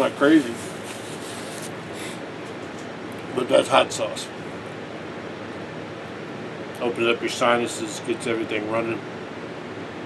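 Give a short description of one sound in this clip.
An elderly man speaks calmly, close by.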